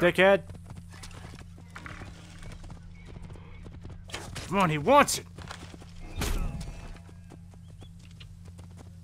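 Horse hooves clatter at a gallop on a dirt road.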